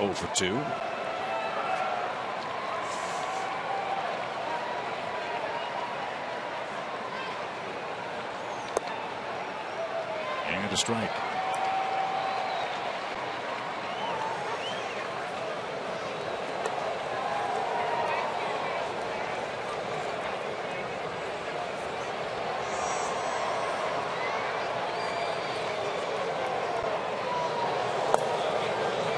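A large crowd murmurs and chatters steadily outdoors.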